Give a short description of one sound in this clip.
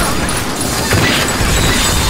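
A heavy launcher fires with a deep thump.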